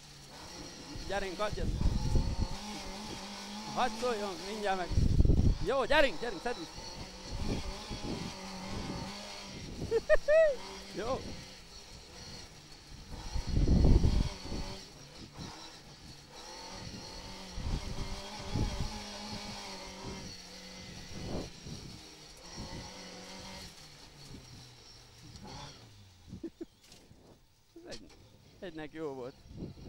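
Gravel and dirt rattle under a car's tyres.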